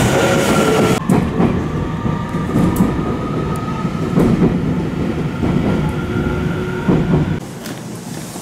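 An electric train rumbles along the tracks, heard from inside a carriage.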